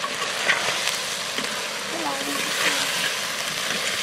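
A spoon scrapes against a clay pot while stirring.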